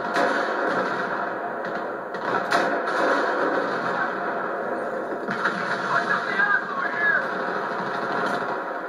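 Dense battle noise roars steadily.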